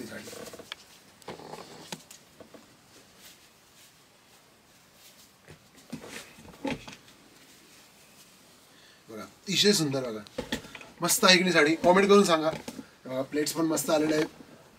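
Thin fabric rustles as it is folded and draped.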